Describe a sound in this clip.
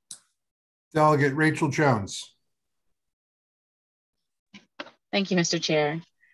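An older man speaks calmly over an online call.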